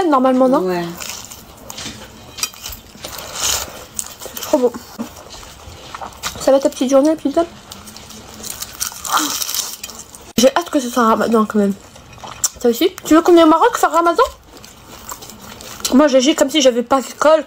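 Flaky pastry crackles as it is torn apart.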